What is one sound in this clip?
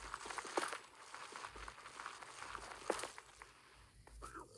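Blocks crunch and crumble as they are broken, in a game.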